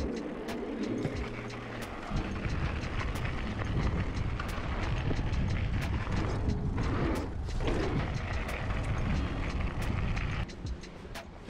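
Bicycle tyres crunch along a gravel path.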